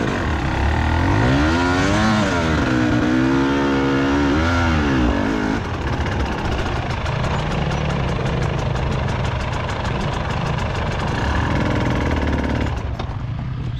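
A motorcycle engine revs hard and whines as it climbs a hill nearby.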